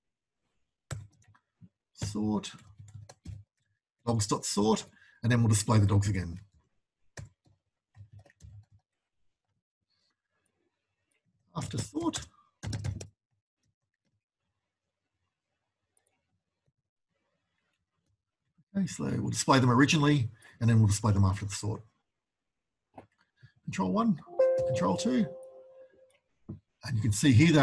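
A man talks calmly and close to a microphone, in bursts with pauses.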